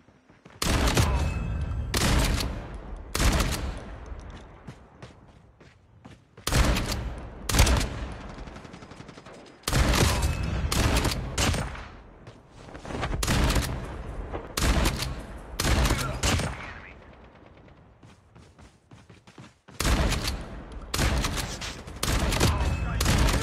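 Rifle shots fire in bursts, with echoes trailing off.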